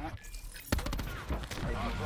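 An automatic rifle fires.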